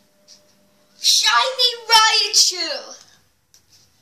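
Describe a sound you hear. A young boy exclaims loudly.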